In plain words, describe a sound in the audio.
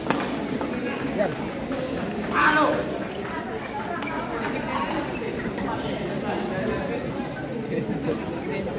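A shuttlecock is struck sharply with rackets in a large echoing hall.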